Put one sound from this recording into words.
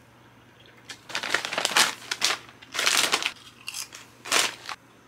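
A chip bag crinkles and rustles close by.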